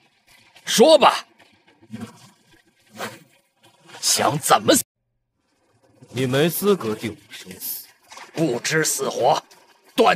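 A man speaks tensely and close by.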